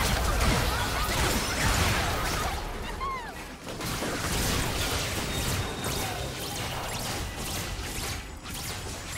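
Magic blasts and clashing hits crackle in a busy battle in a video game.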